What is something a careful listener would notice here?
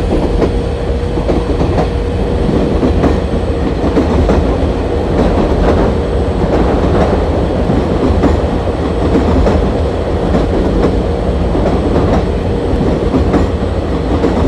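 A train rumbles steadily along the rails, its wheels clicking over the track joints.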